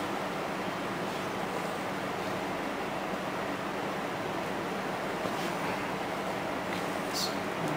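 Fingers fiddle with a small cable, rustling softly.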